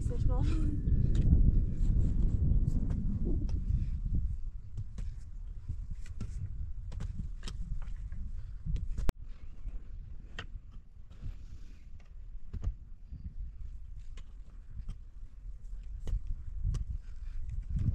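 Hoes chop and scrape into dry soil.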